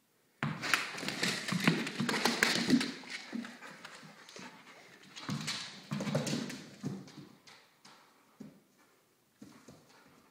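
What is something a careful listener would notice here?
A dog's claws click and scrabble on a hard tile floor.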